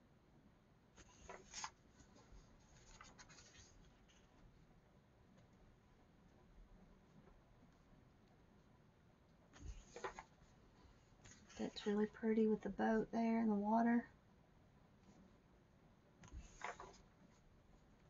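Paper pages rustle and flip as a book's pages are turned.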